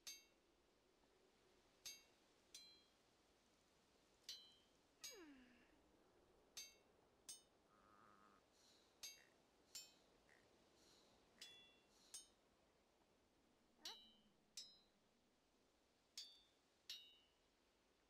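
Short soft game blips sound at steady intervals.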